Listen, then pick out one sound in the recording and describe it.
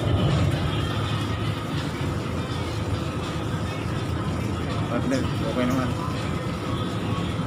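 A boat engine drones low and steady.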